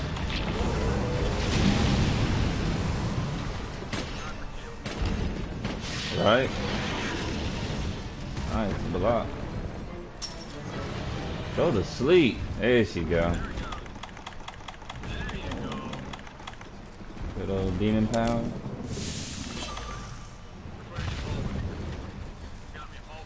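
Deep rumbling and crashing fill the air.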